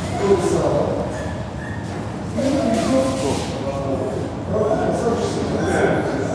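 Children chatter and call out in an echoing hall.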